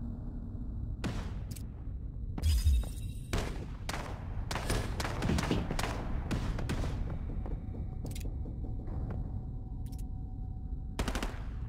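A rifle fires in short bursts.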